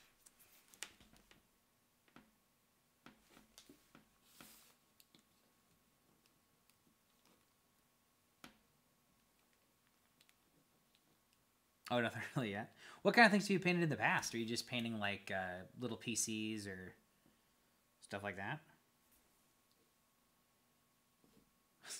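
A plastic figure taps and clicks as a hand handles it.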